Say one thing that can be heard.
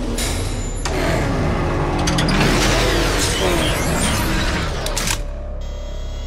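A vehicle engine revs and roars loudly.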